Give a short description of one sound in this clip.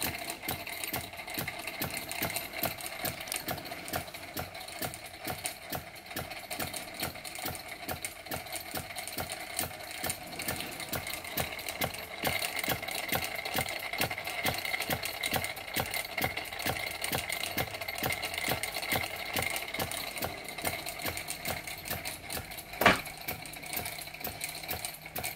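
A small steam engine chuffs rapidly and steadily.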